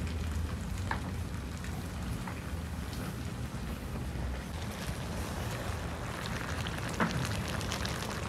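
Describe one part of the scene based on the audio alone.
Grains of rice shift and rustle softly.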